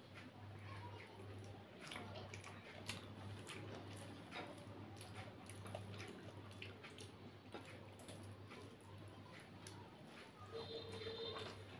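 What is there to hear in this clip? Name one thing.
A woman chews food quietly.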